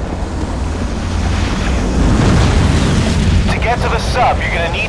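A jet roars past overhead.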